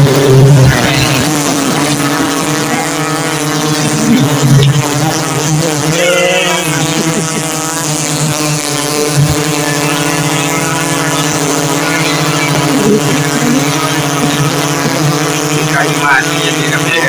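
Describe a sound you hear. A dense swarm of bees buzzes loudly and steadily close by.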